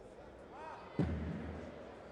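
A basketball thuds against the rim.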